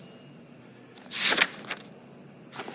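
A page of a notebook is flipped over.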